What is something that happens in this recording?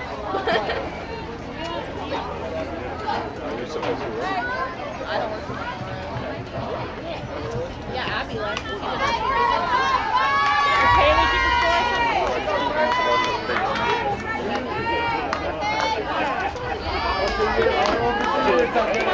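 Spectators cheer and shout from the sidelines outdoors.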